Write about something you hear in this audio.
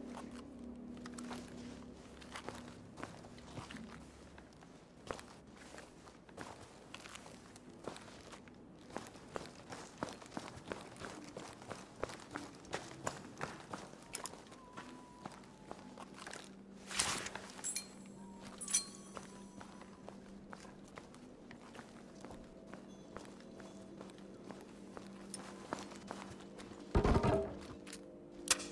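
Footsteps tread steadily across a hard floor.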